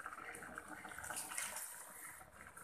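Water pours into a pot of bubbling liquid.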